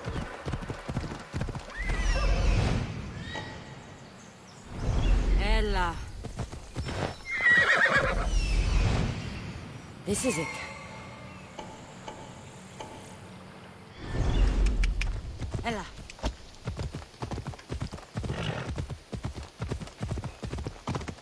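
Horse hooves thud on a dirt path.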